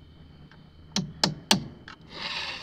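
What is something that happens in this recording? A hammer knocks sharply on a plastic pipe fitting.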